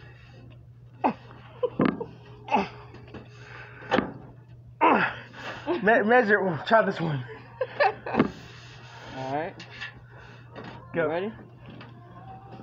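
A man grunts and strains with effort close by.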